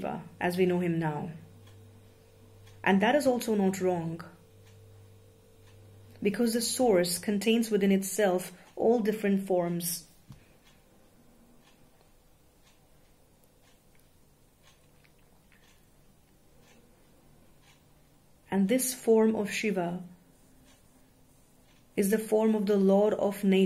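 A young woman speaks calmly and close by, with pauses.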